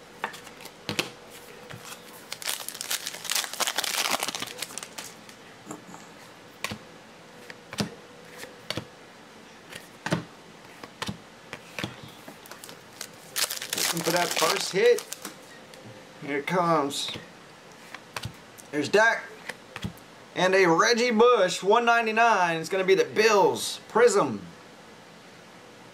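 Trading cards slide and rustle as they are shuffled by hand.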